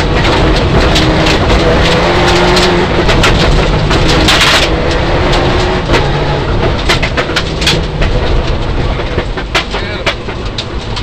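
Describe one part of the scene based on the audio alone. A rally car engine roars and revs hard.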